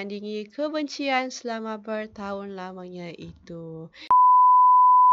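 A young woman speaks with strong emotion.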